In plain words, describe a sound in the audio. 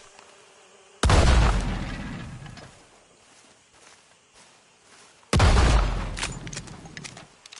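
A revolver fires loud shots that echo away outdoors.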